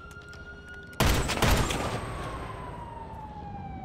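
A rifle fires a loud shot that echoes.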